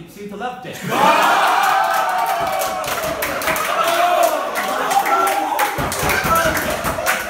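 A group of men sings along loudly in a room.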